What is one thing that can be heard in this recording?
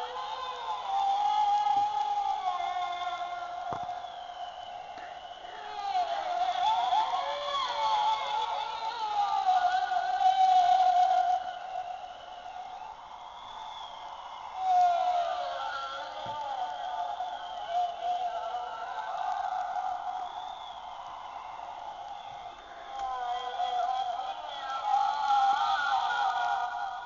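A ghostly prop head moans and wails eerily through a small speaker.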